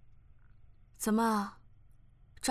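A man speaks with surprise.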